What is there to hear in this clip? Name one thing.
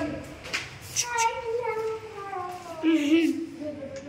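A boy laughs.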